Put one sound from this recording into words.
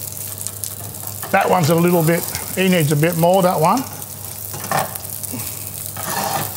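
Patties sizzle in hot oil in a frying pan.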